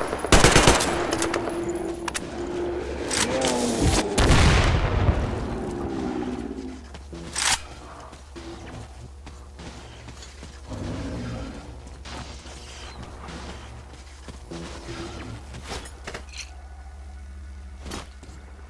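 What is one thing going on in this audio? Footsteps crunch over wet, gritty ground.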